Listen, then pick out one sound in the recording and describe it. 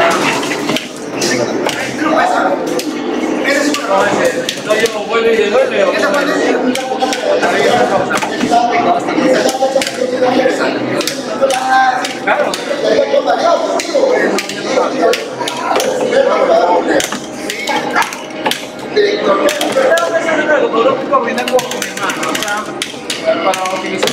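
Arcade buttons click and a joystick rattles under quick hands.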